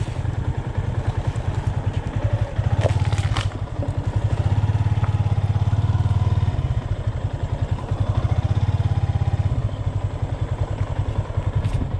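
A motorcycle engine idles with a fast, steady low throb.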